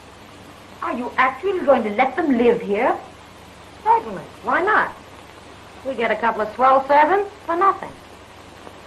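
A young woman answers in surprise.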